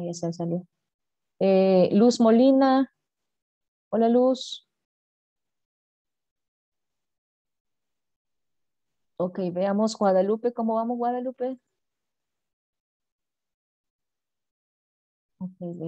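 A young woman speaks calmly in bursts over an online call.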